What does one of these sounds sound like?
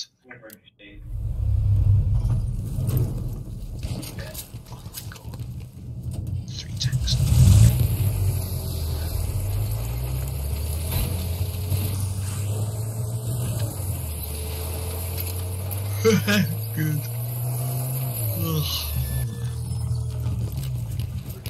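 A motorcycle engine rumbles steadily as it drives over rough ground.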